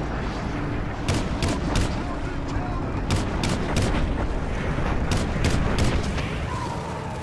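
Rapid gunfire cracks in quick bursts.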